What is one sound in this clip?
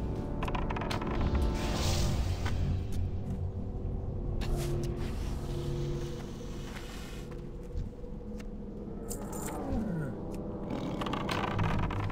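Spell effects whoosh and crackle as a character fights.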